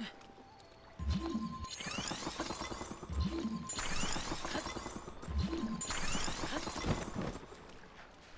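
Ice cracks and chimes as blocks of ice form in water.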